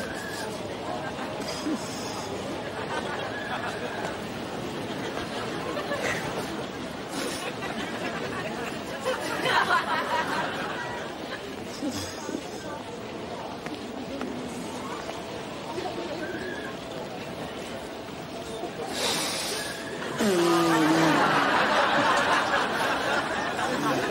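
A crowd murmurs and chatters outdoors at a busy fair.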